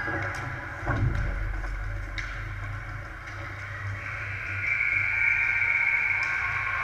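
Skate blades scrape and hiss across the ice in a large echoing rink.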